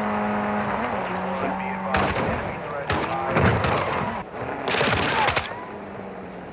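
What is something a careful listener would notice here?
An off-road buggy engine roars and revs.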